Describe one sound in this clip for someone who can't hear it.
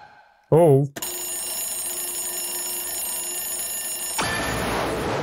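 An alarm clock rings with a steady tone.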